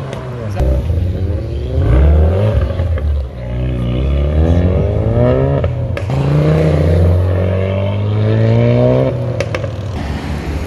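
Exhaust pops and bangs crackle from a car.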